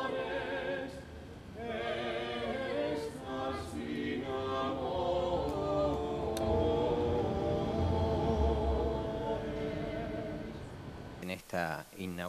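A small group of young men and women sing together without instruments.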